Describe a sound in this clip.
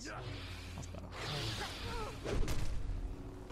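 A spell crackles and whooshes.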